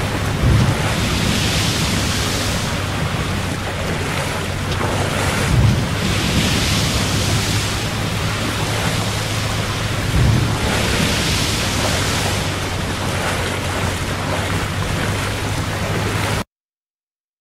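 Water splashes and sprays in surges against a speeding boat.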